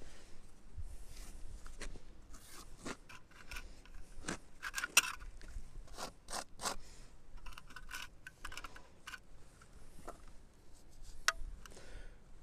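A trowel taps and clicks against a hawk board.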